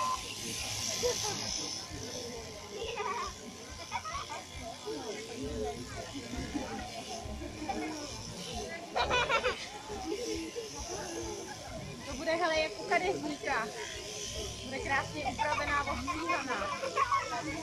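A crowd murmurs and chatters nearby outdoors.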